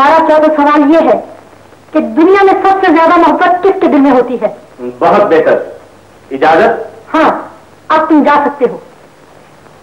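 A woman sings in a high, strong voice, heard through an old, hissy recording.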